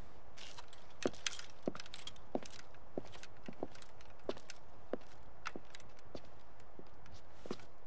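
Footsteps thud on a stone path at a steady walking pace.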